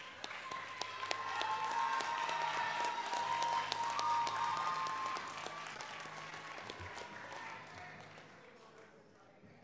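A crowd applauds in an echoing hall and slowly fades.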